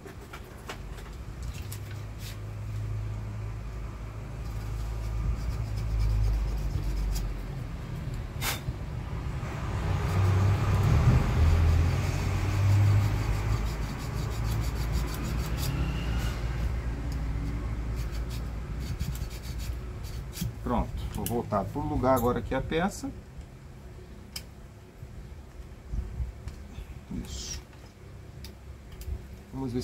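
Small metal parts click and tap close by.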